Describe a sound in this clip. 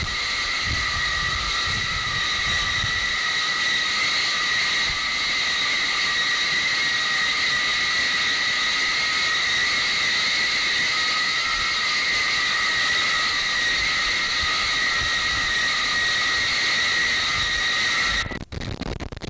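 Jet engines whine loudly and steadily nearby.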